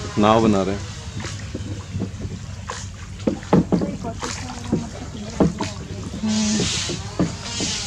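A wooden paddle splashes and dips into water in slow strokes.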